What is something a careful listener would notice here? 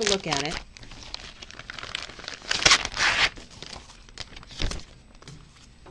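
Paper crinkles and rustles as it is handled up close.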